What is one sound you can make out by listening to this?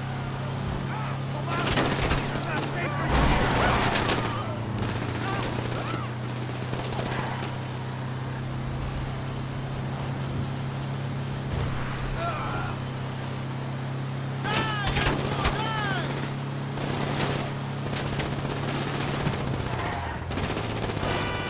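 A van engine hums steadily as it drives along a road.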